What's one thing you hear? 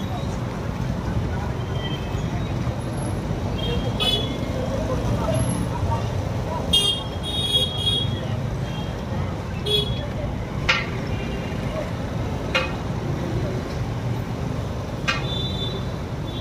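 Boots tramp steadily on a street.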